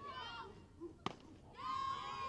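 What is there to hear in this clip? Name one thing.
A bat cracks against a ball.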